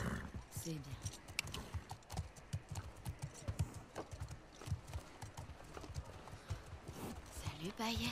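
Hooves thud on a packed dirt floor.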